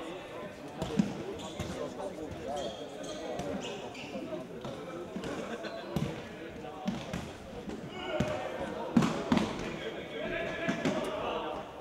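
A ball is kicked with hard thuds that echo in a large hall.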